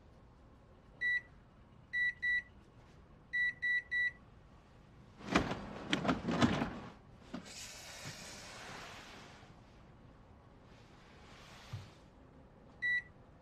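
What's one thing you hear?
An electronic door keypad beeps as buttons are pressed.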